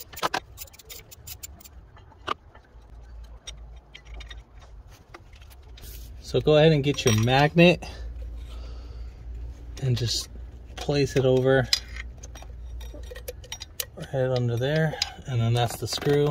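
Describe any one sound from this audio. Metal tools clink and tap against engine parts.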